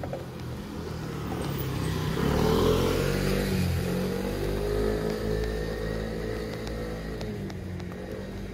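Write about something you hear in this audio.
A motor scooter passes close by.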